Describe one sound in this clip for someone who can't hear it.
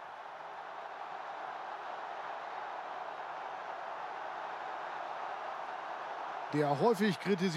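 A large stadium crowd roars loudly.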